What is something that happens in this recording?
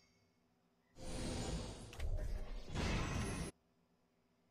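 A loud, dramatic music sting plays.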